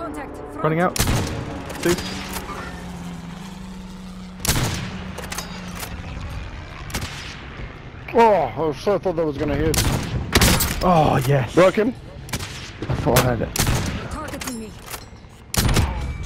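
A rifle fires single loud shots.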